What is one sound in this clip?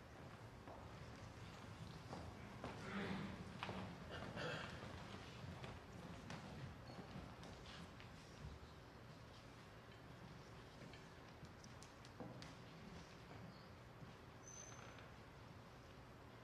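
Footsteps shuffle and tap across a stage in a large hall.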